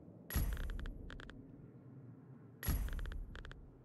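A short electronic menu blip sounds.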